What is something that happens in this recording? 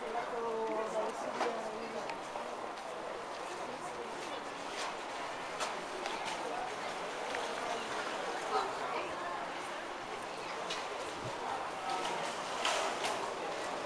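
Footsteps patter on a paved walkway.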